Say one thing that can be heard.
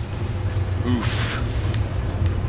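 Steam hisses in a sudden burst.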